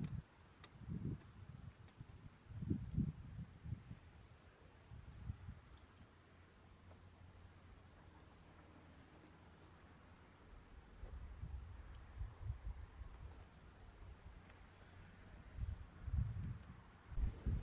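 Wire clinks faintly against a metal pole frame as it is twisted tight.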